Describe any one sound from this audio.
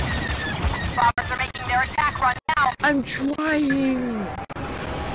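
Laser cannons fire in rapid chirping bursts.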